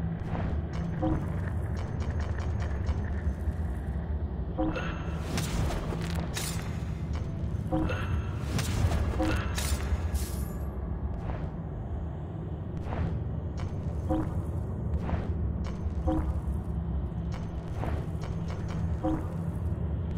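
Short soft blips chime as menu items are selected.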